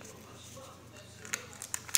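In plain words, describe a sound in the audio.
A bill slot mechanism clicks and whirs as it pushes a banknote back out.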